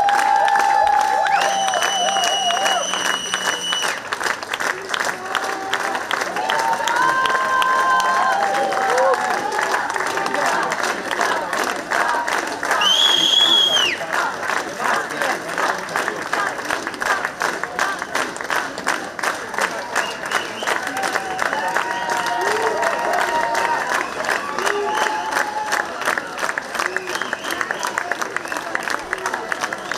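A large crowd talks and shouts loudly all around.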